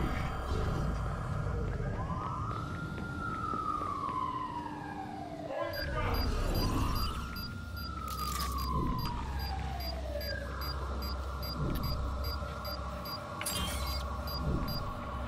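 Footsteps scuff softly on a hard floor.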